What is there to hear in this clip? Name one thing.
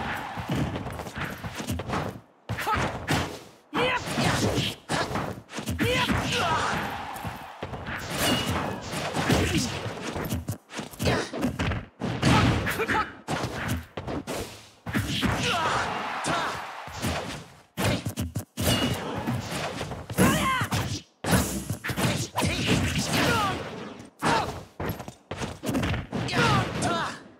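Swords swish and clash in quick bursts.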